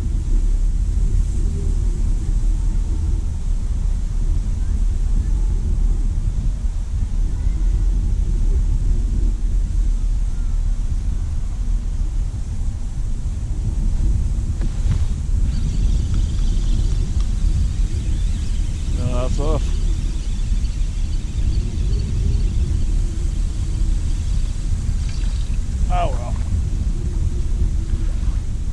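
Wind blows hard across the microphone outdoors.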